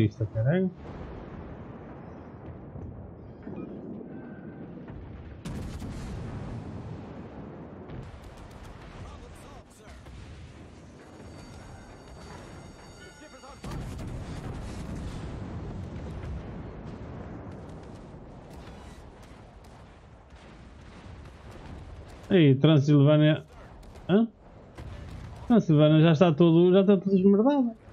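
Heavy guns fire with deep booms.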